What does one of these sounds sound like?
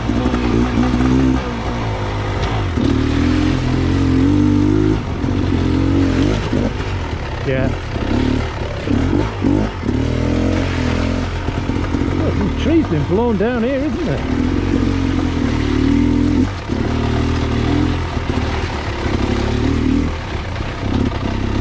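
Tyres squelch and splash through mud and puddles.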